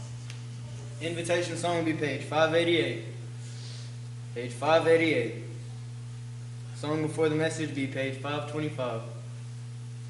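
A young man speaks calmly through a microphone in a reverberant hall.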